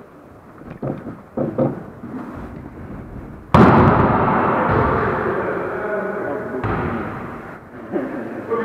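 A volleyball is struck hard and thuds, echoing through a large hall.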